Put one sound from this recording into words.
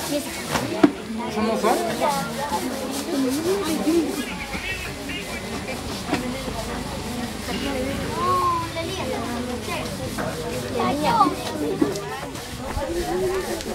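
A crowd of men, women and children chatter and talk over one another outdoors.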